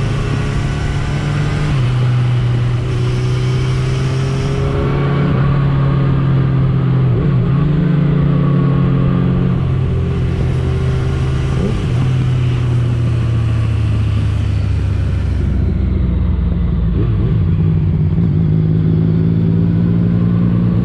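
A motorcycle engine hums steadily up close, its pitch shifting as it changes speed.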